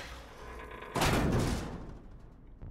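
A heavy metal door slides open with a rumble.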